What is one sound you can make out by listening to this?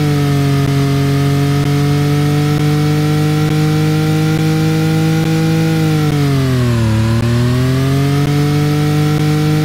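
A race car engine roars steadily at high revs, dipping briefly as the car slows and then climbing again.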